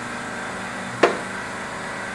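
A metal tool knocks sharply once on a metal block.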